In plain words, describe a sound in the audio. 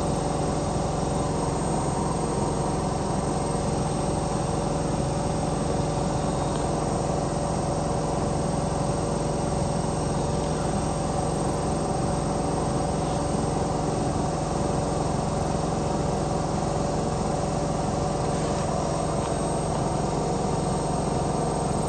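Water sloshes inside a washing machine drum.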